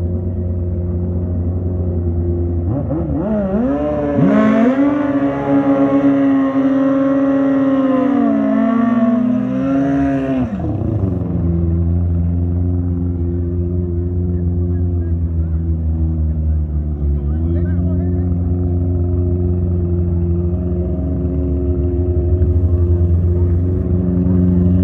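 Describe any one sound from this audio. A motorcycle engine idles with a loud, rumbling burble.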